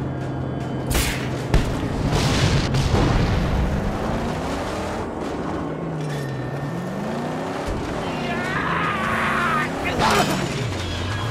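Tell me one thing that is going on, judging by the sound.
Metal crashes loudly in heavy impacts.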